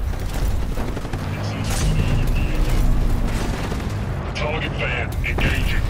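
Explosions and metal debris crash nearby.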